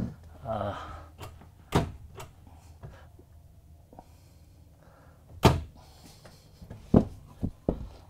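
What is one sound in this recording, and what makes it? A cabinet door opens and clicks shut.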